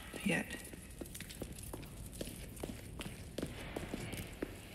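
Footsteps thud on stone steps at an even pace.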